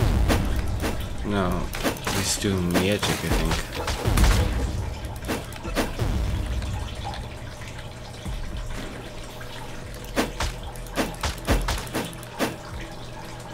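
Sharp slashing and striking sounds ring out in a fight.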